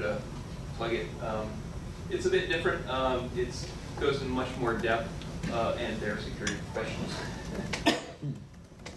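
A man speaks through a microphone to an audience, calmly explaining.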